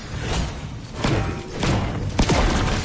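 A video game chest bursts open with a bright chime.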